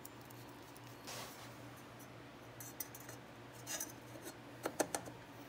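A plastic cover scrapes and knocks as it is fitted onto a wheel hub.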